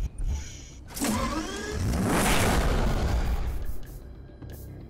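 A sports car engine revs loudly.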